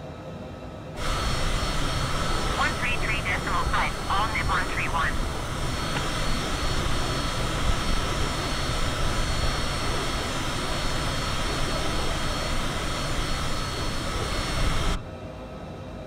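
Jet engines roar loudly and steadily.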